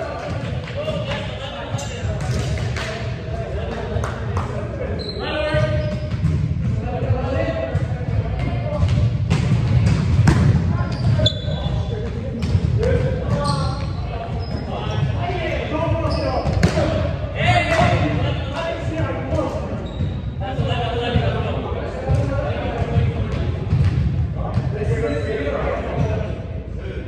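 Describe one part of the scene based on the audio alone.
Young men call out and talk with animation in a large echoing hall.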